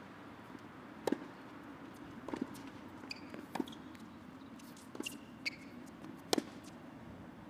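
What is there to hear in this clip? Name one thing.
A tennis racket strikes a ball back and forth in a rally.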